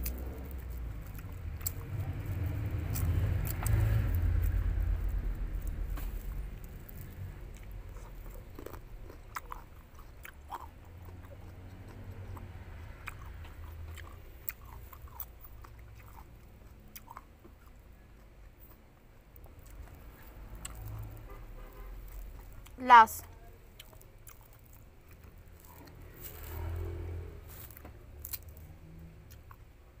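Fruit skins crackle and tear as fingers peel them.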